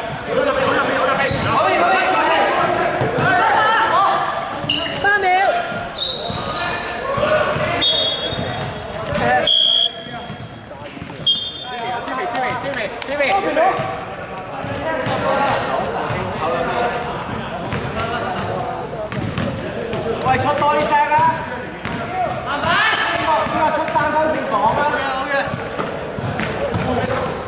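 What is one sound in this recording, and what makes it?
Young men shout and call out to each other across the hall.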